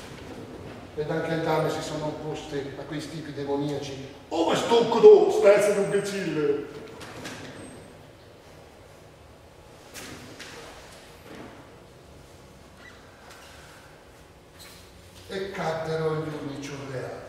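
A man speaks with strong feeling in a large echoing hall.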